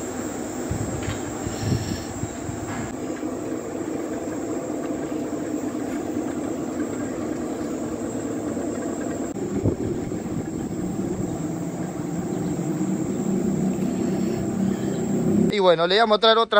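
A large spinning drum on a machine hums and rumbles steadily.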